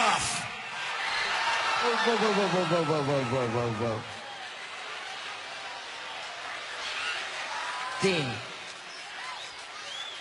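A large crowd cheers and jeers loudly.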